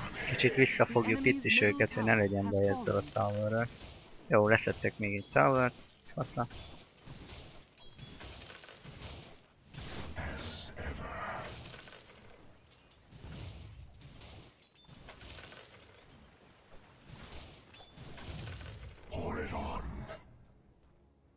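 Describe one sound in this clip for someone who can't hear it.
Game spell effects and combat hits clash and crackle.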